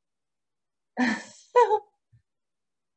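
A young woman laughs briefly through an online call.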